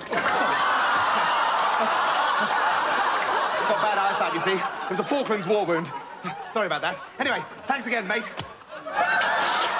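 A younger man talks and laughs.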